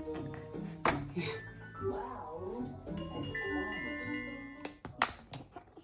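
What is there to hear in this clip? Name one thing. Electronic piano notes play from a tablet.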